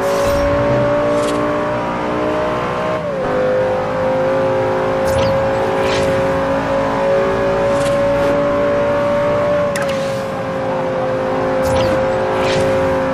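A sports car engine roars steadily at high speed, shifting gears.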